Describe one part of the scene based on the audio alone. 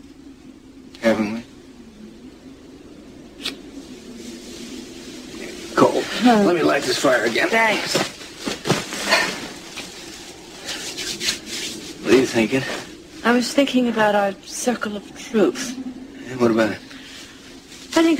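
A middle-aged man speaks calmly, close by.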